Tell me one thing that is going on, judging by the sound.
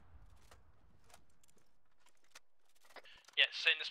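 A machine gun's ammunition belt clicks and rattles as it is loaded.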